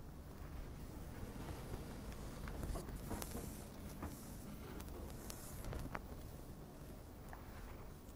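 An elderly man speaks calmly and slowly close to a microphone.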